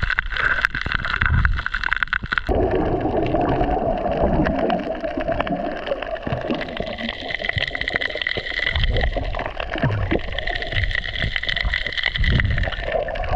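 Bubbles from a diver's breathing gurgle and rumble underwater in bursts.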